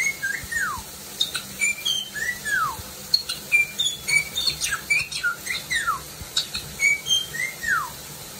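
A parrot whistles and chirps in quick, sliding calls close by.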